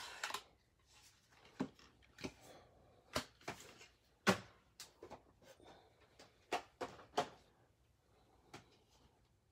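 Cards clack as they are set down.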